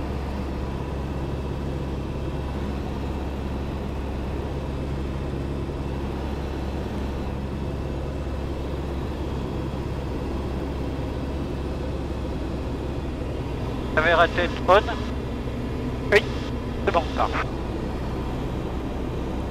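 A small plane's engine drones steadily inside the cabin.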